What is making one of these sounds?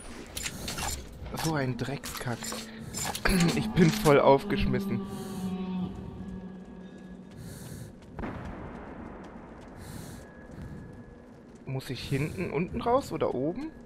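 Footsteps thud on concrete stairs.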